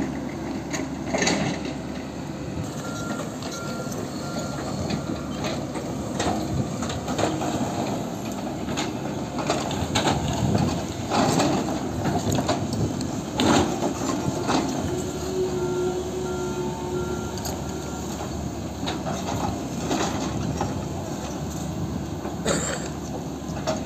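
Excavator diesel engines rumble steadily.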